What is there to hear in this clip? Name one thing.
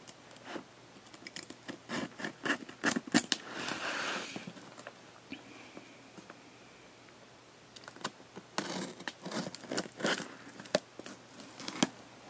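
A box cutter blade slices through packing tape and cardboard.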